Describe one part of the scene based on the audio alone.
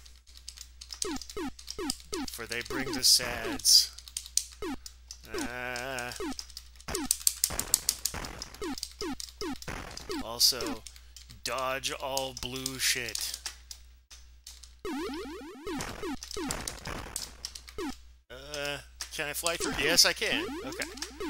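Rapid laser shots zap with falling pitch.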